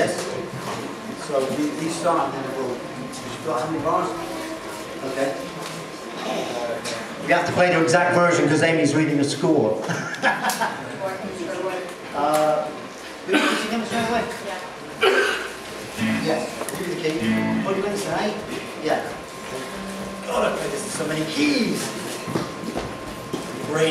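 A small band plays rock music.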